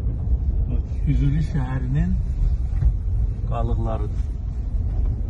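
A man speaks briefly and calmly inside a car.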